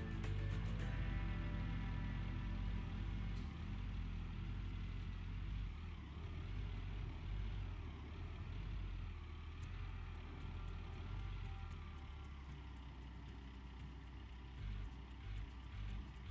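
A hydraulic excavator arm whines as it moves.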